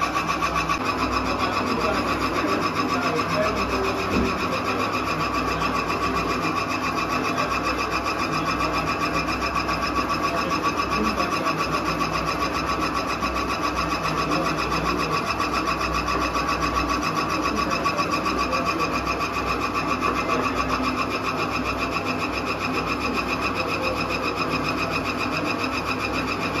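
A grinding mill's motor hums and whirs loudly and steadily.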